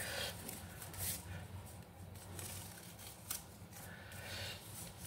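Paper strips rustle and crinkle between fingers.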